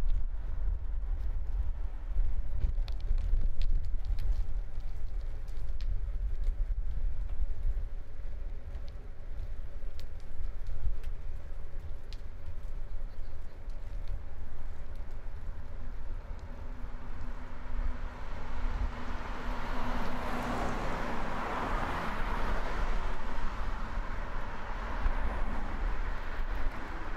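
Wind rumbles steadily, outdoors.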